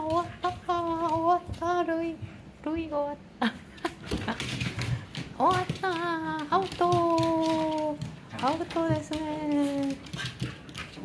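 A dog whines in high, wavering cries.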